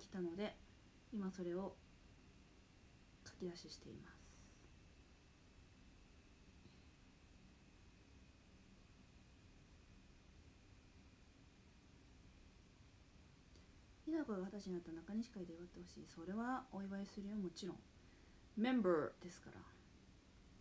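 A young woman speaks calmly and close to the microphone, in short bursts with pauses.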